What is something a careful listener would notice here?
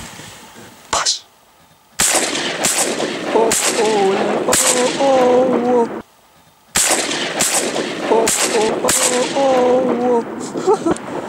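Gunshots ring out in quick succession outdoors.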